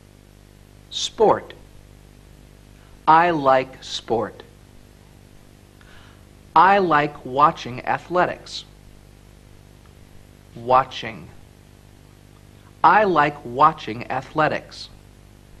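A young man speaks clearly and slowly in short phrases, pausing between them.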